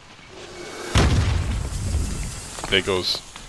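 A loud explosion booms nearby and rumbles away.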